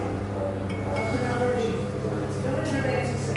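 A ship's bell rings with a ringing tone that lingers.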